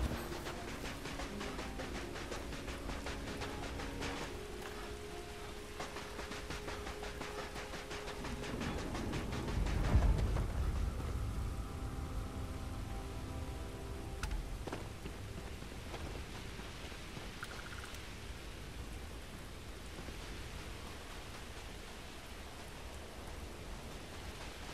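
Footsteps crunch steadily on gravelly ground.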